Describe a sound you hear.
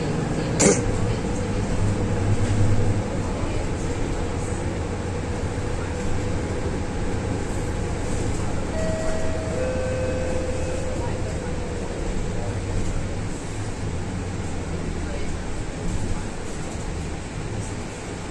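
A bus engine rumbles steadily from inside the cabin.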